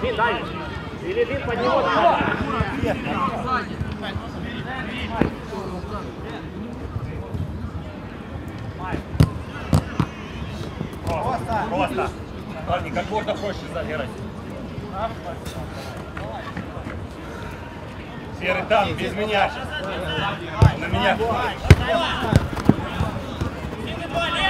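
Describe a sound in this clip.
Young men shout and call out to each other across an open pitch.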